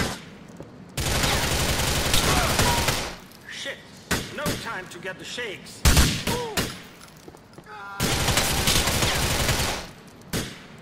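Rapid gunfire rattles in bursts, loud and close.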